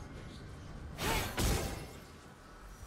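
Magic spell effects burst with sharp whooshes.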